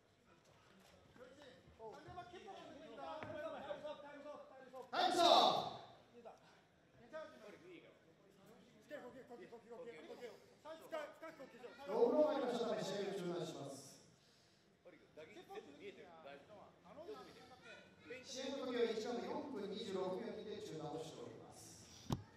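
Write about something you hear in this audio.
A crowd of spectators cheers and shouts in a large hall.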